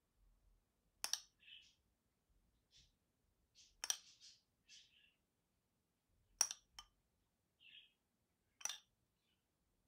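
A metal spoon clinks against a bowl.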